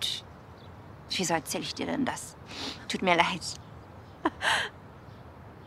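A young woman speaks softly and hesitantly, close by.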